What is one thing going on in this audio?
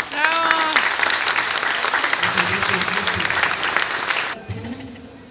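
A choir of young girls sings loudly through a loudspeaker.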